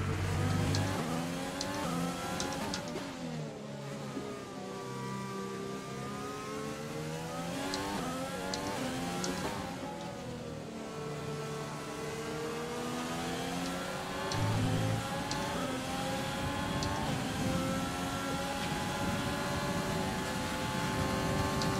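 A racing car engine whines loudly, rising and falling as it shifts gears.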